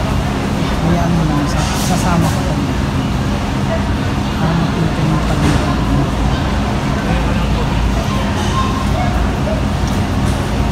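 Distant voices murmur faintly in a large echoing hall.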